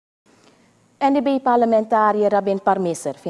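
A woman speaks calmly and clearly, like a news presenter.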